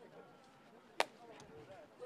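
A stick strikes a ball with a sharp crack.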